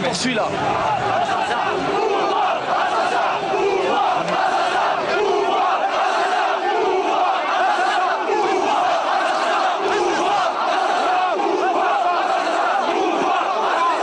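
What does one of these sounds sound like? A large crowd chants in rhythm.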